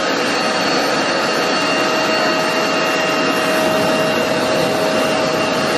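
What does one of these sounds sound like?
A vacuum nozzle scrapes across carpet.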